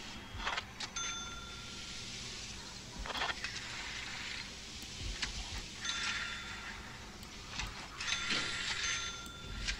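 Short electronic chimes ring out as pieces are placed in a game.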